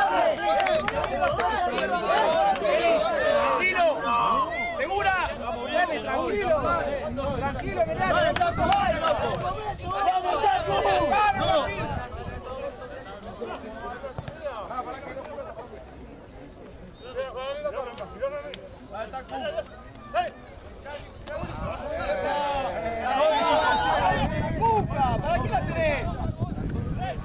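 Men shout and call out to each other on an open field.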